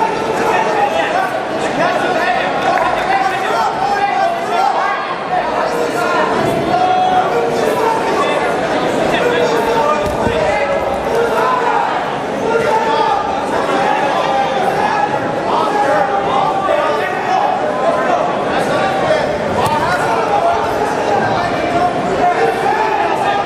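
A crowd chatters and shouts throughout a large echoing hall.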